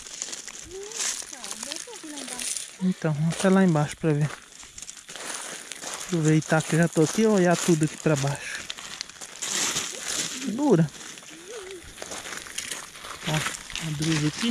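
Footsteps crunch on loose gravel and stones.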